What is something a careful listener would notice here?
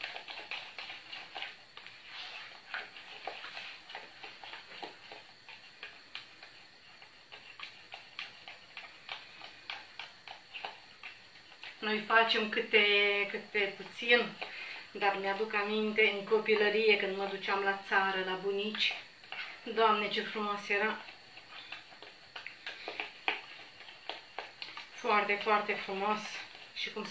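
A spoon scrapes and taps against the inside of a pot.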